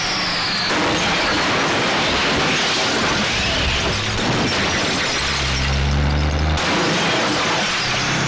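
A car crashes with a loud metallic smash.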